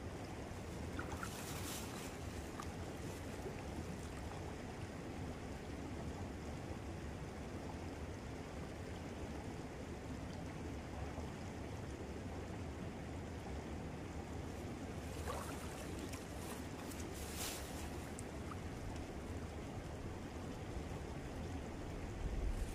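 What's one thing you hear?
Water flows steadily over rocks nearby.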